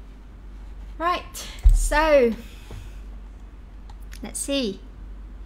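A young woman speaks with animation into a nearby microphone.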